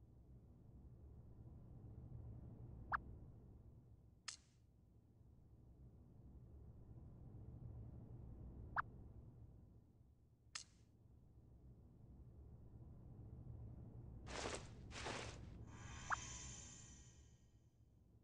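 A low electronic drone hums and swells throughout.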